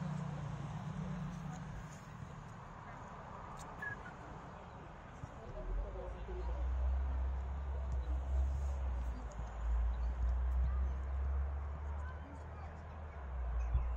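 Distant players shout faintly across an open field.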